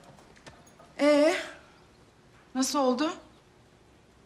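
A woman speaks sharply close by.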